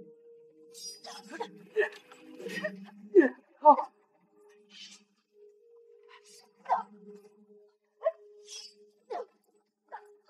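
Sharp blows and whooshes land in a fight.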